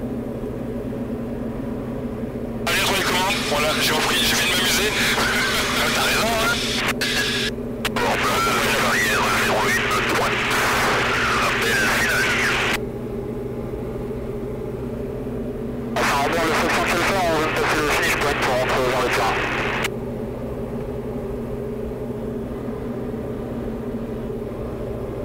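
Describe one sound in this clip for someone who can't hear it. A small plane's engine drones steadily, heard from inside the cabin.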